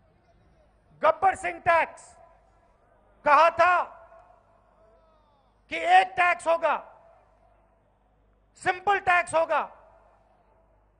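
A man speaks forcefully into a microphone, heard through loudspeakers outdoors in short bursts.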